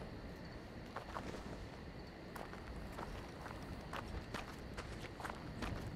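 Footsteps crunch over loose rubble.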